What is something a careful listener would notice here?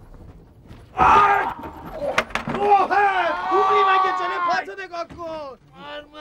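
A man shouts loudly and excitedly nearby.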